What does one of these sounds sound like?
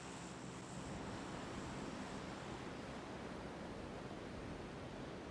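Wind rushes loudly past a skydiver in free fall.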